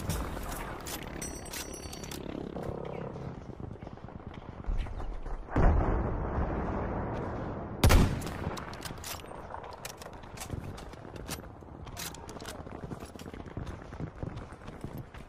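A rifle bolt clicks and clacks as it is reloaded.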